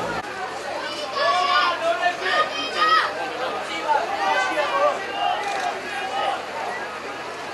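Young people call out from inside a vehicle with animated voices.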